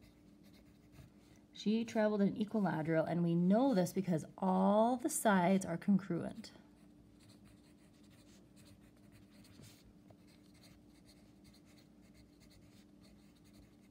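A pencil scratches on paper while writing.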